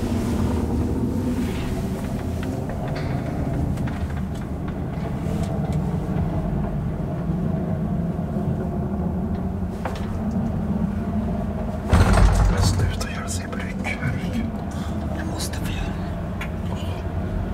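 An elevator motor hums steadily while the car moves.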